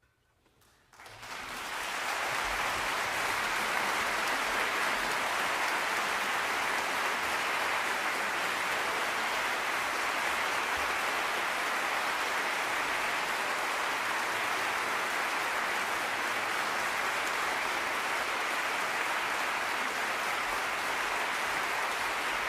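An audience bursts into loud, steady applause in a large hall.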